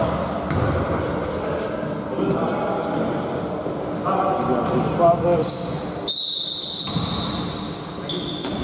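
Men call out to each other in a large echoing hall.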